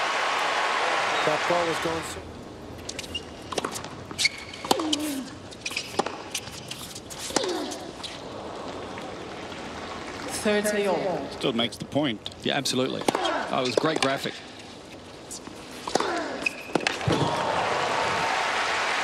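A large crowd cheers and applauds in a big arena.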